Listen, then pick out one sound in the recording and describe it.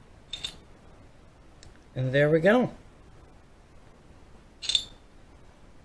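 A metal padlock clicks and clinks as it is handled.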